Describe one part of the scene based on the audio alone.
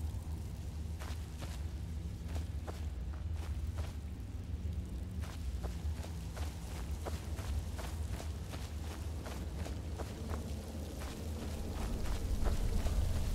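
Footsteps crunch steadily on a dirt floor.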